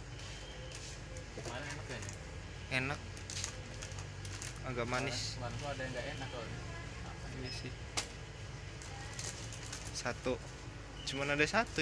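Plastic snack packets crinkle and rustle in a hand.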